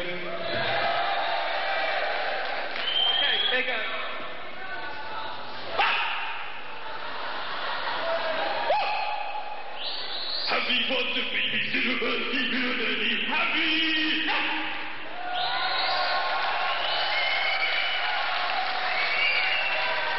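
A man sings and shouts into a microphone.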